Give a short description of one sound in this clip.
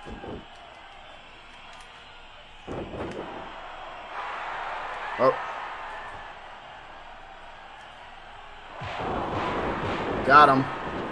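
A crowd cheers and roars.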